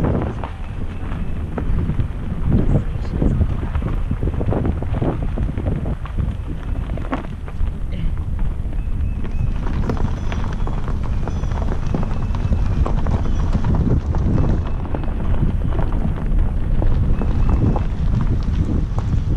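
Wind buffets loudly through an open car window.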